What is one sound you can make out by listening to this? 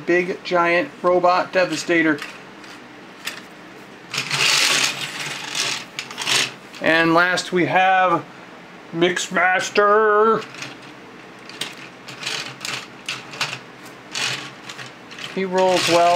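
Plastic toy trucks scrape and clatter on a hard tabletop.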